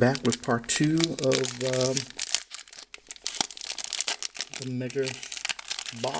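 A plastic wrapper crinkles and tears as it is opened by hand.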